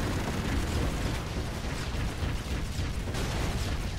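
An electric beam zaps and crackles.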